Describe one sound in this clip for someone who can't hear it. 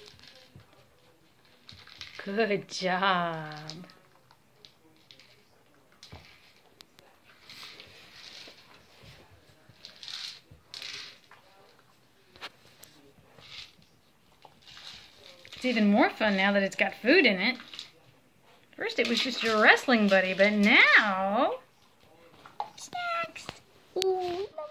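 A plastic toy wobbles and knocks as a puppy nudges it across a rug.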